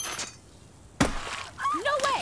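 A metal paint bucket crashes down with a loud clang.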